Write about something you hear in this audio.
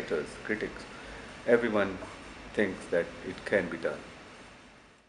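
An elderly man speaks calmly and close to the microphone.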